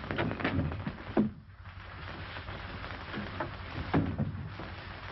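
A door opens and shuts with a knock.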